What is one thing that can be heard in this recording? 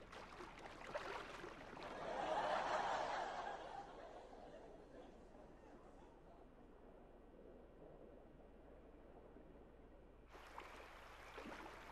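Water rushes and gurgles as a small body plunges into it.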